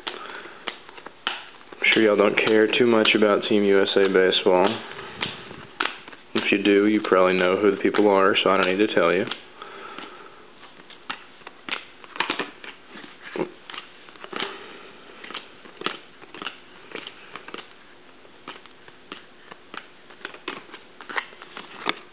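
Cardboard cards flick and rustle as a hand leafs through a stack.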